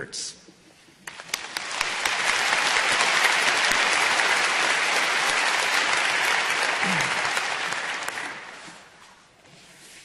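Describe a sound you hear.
A large audience applauds in a large hall.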